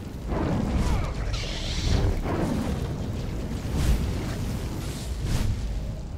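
Energy blasts crackle and burst.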